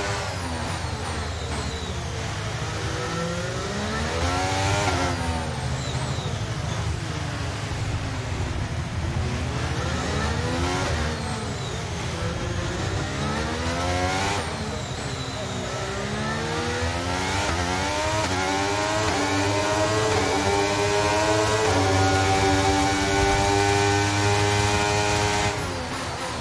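A racing car engine screams, rising and falling in pitch as the car speeds up and brakes, shifting gears.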